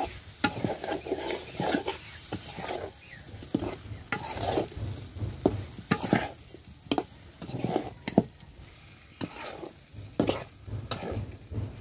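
Food sizzles in a hot wok.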